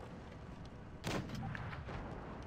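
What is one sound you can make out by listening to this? A tank cannon fires with a loud boom.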